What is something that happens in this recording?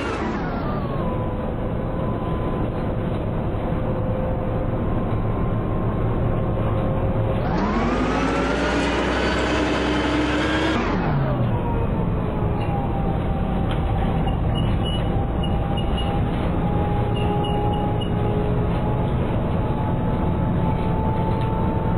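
A diesel city bus engine accelerates through its gears.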